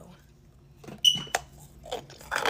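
A young woman bites into a chunk of cornstarch with a crunch.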